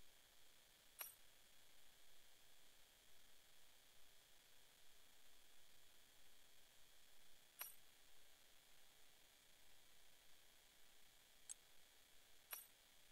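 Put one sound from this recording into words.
Short, sharp menu clicks sound now and then.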